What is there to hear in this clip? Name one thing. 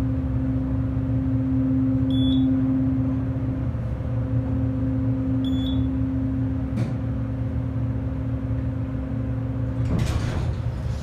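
An elevator motor hums steadily as the car rises.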